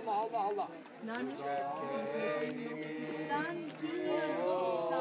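A group of elderly men sing together loudly.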